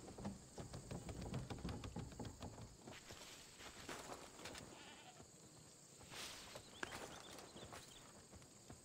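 Leafy bushes rustle as someone creeps through them.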